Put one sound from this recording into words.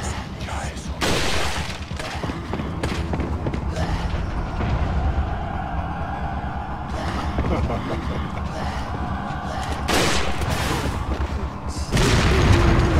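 Gunshots ring out with a loud crack and echo.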